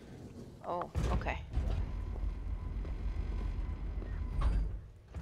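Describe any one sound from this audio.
An elevator rumbles low and steady as it moves.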